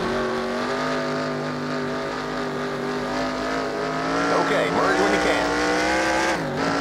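A race car engine drones steadily at high revs, dipping briefly near the end.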